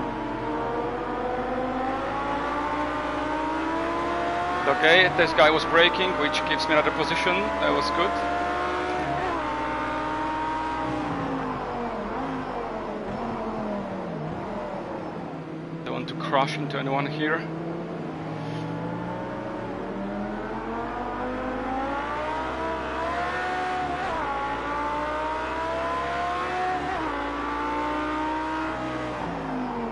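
A racing car engine roars and whines, rising and falling as it shifts gears.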